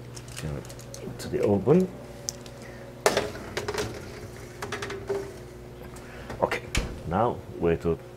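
An oven door opens and shuts with a clunk.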